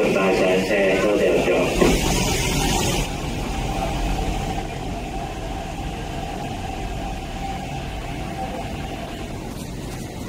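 A train rolls in, rumbling and slowing to a stop.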